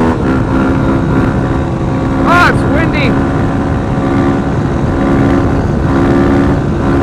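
A motorcycle engine drones steadily at high speed.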